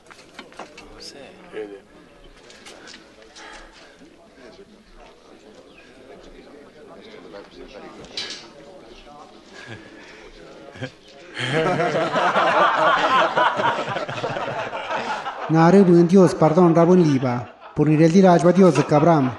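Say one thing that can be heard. A group of men chatter and laugh together.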